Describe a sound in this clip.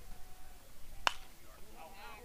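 A metal bat cracks sharply against a baseball outdoors.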